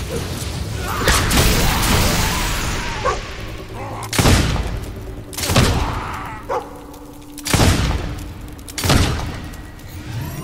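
Fiery explosions burst with heavy booms.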